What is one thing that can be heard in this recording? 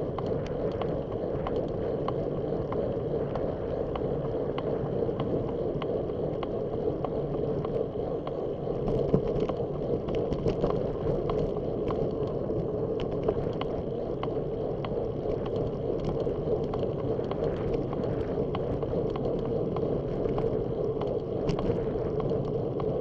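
Tyres roll over a rough road.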